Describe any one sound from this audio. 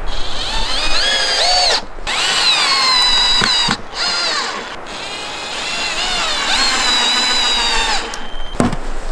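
A cordless drill whirs, revving up and down.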